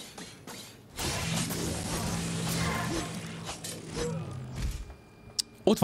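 Video game combat sounds clash and whoosh.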